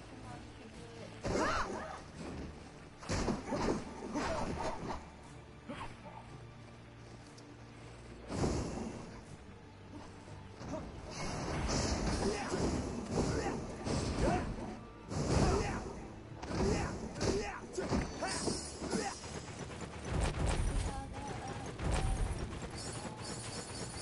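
Game sword strikes and magic blasts crash and whoosh.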